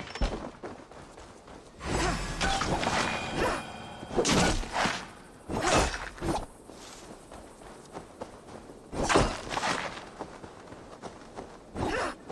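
Footsteps crunch over dirt and grass outdoors.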